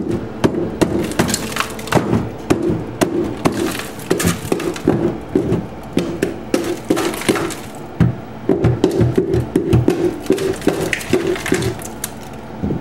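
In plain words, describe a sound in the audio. A tool scrapes and knocks against hard plastic close by.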